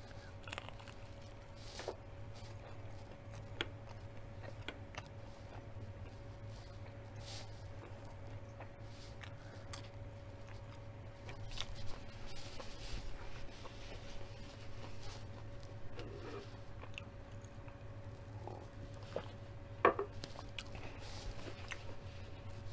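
A woman crunches on crispy fried food close to a microphone.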